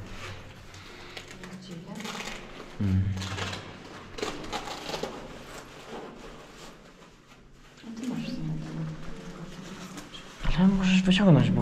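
A man talks nearby, his voice rising and excited at times.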